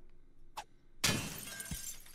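A pickaxe strikes wood with a loud crack.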